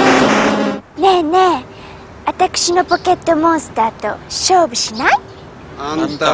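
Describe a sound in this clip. A young girl sings brightly through a loudspeaker.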